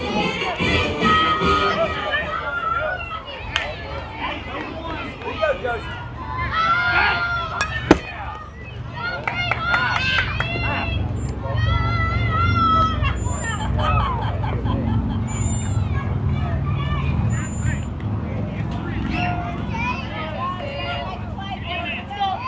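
Children and adults shout and cheer from nearby.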